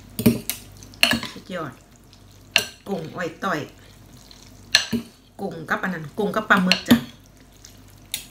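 A young woman chews and slurps noodles loudly.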